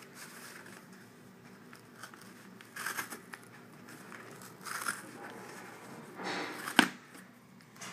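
A cardboard tear strip rips open in short pulls.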